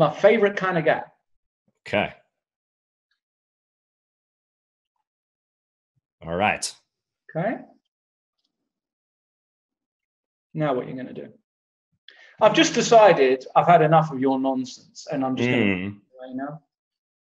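A man talks with animation through a microphone, in short bursts with pauses.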